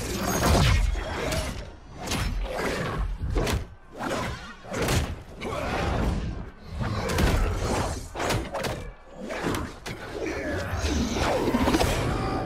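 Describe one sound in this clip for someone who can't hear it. Heavy blows and impacts land in a fight.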